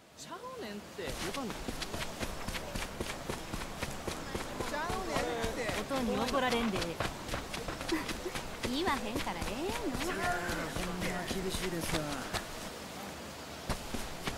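Quick footsteps run over a dirt road.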